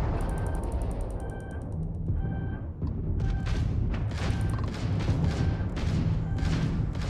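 A missile-lock warning beeps repeatedly.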